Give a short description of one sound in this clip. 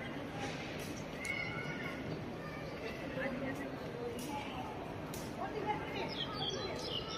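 A crowd of adults chatters in the background outdoors.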